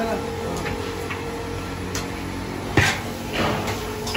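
A ladle scrapes and clanks against a metal pot.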